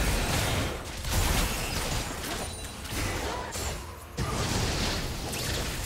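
Magic spells whoosh and crackle in a fast fantasy battle.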